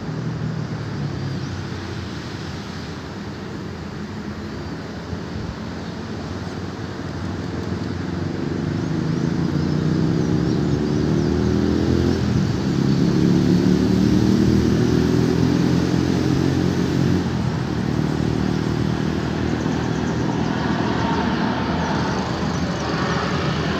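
A jet plane roars overhead, growing louder as it approaches.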